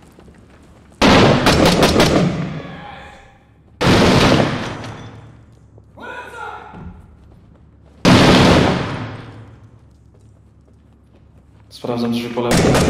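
Rifle shots fire in loud bursts that echo through a hard room.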